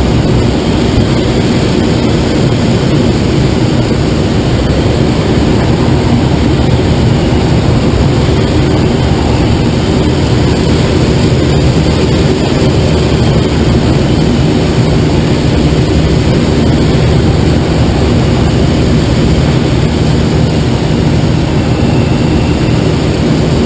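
Wind rushes loudly and steadily over a glider's canopy in flight.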